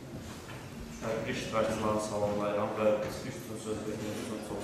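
A young man speaks formally into a microphone in an echoing room.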